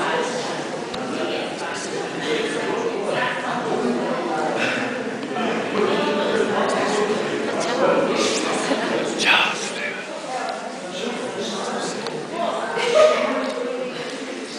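A crowd of men and women murmur and talk nearby in an echoing hall.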